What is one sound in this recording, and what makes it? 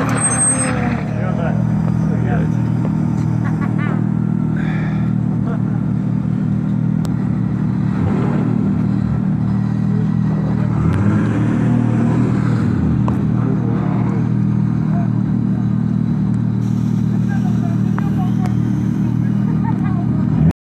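A car engine idles with a steady low rumble close by.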